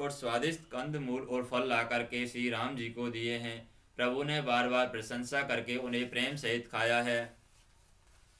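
A man speaks calmly and clearly into a microphone, close by.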